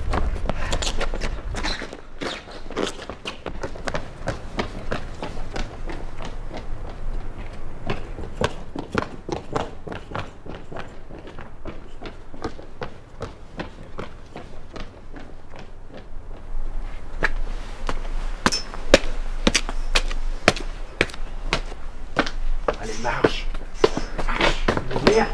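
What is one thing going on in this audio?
Footsteps tap on pavement outdoors.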